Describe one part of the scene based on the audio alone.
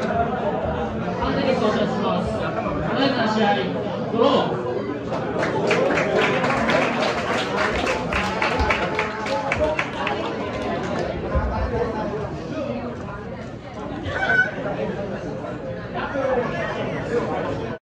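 A crowd chatters and murmurs in an echoing indoor hall.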